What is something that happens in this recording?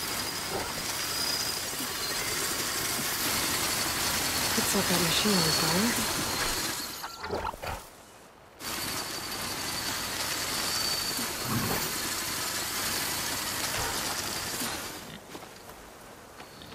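Wind blows steadily across an open field.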